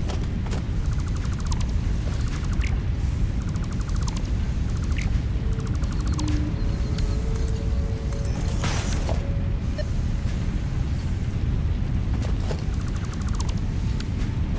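Interface clicks tick in quick bursts.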